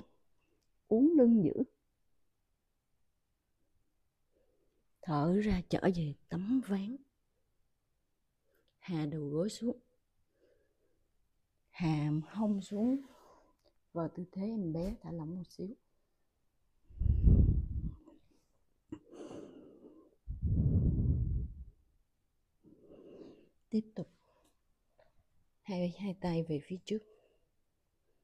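A woman speaks calmly and slowly, close to a microphone.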